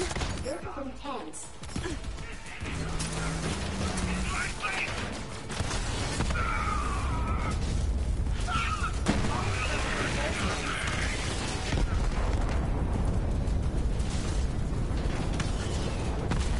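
Guns fire in rapid bursts amid loud game action sounds.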